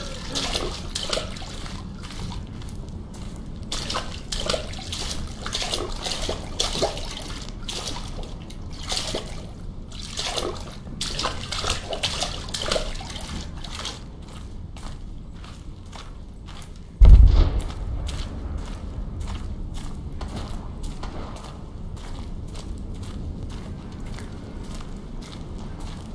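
Footsteps squelch through mud at a steady walking pace.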